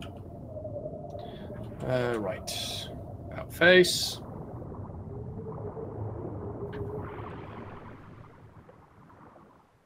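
Water swirls and murmurs as a creature swims underwater.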